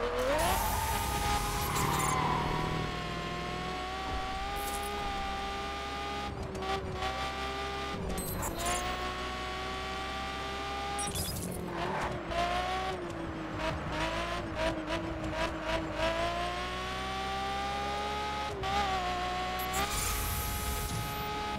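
A race car engine roars at high revs, rising and dropping in pitch as the gears shift.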